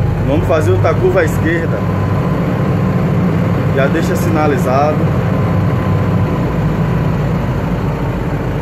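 A bus engine rumbles steadily while driving.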